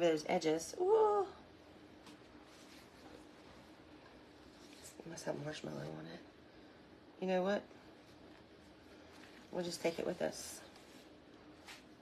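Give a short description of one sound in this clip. Paper towels rustle and crinkle.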